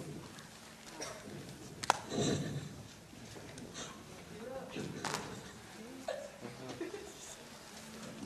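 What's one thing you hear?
A young woman speaks in a large echoing hall.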